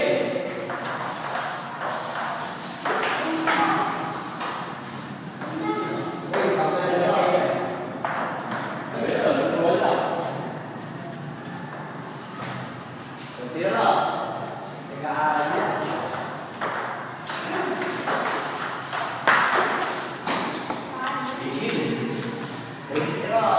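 A ping-pong ball clicks back and forth on paddles and a table in an echoing room.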